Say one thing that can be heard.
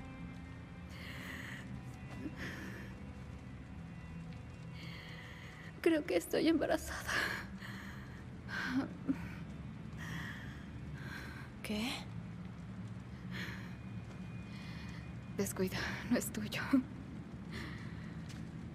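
A young woman speaks softly and tearfully, close by.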